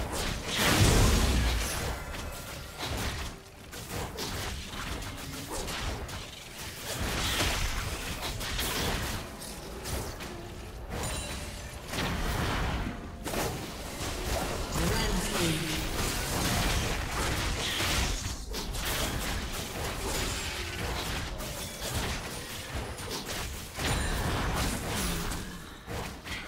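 Magic blasts and impacts crackle in a video game fight.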